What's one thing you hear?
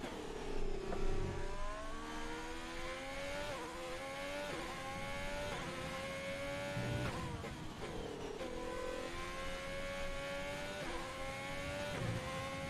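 A racing car engine whines, rising in pitch through the gears and dropping at each shift.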